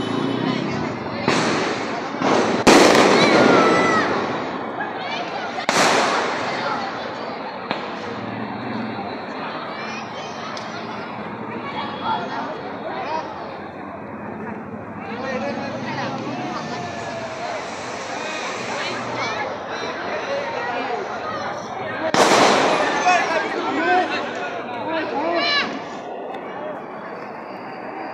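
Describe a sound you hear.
A crowd of men and women chatter and shout nearby.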